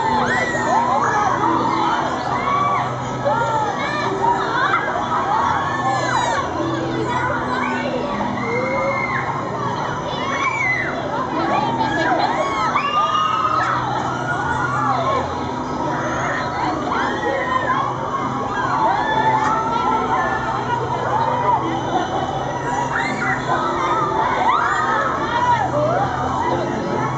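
A fairground ride's machinery hums steadily.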